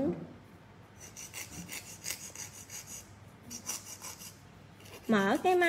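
A nail file rasps back and forth in quick, short strokes.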